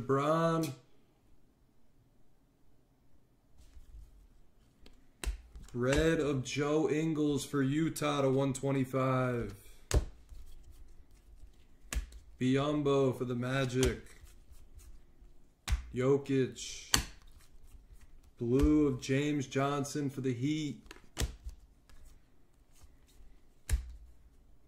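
Trading cards slide and tap against each other in a pair of hands.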